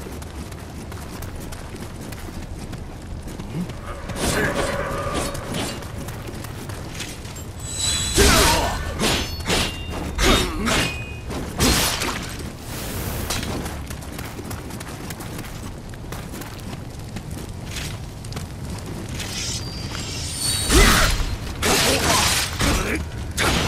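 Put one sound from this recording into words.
Footsteps crunch on a gritty floor.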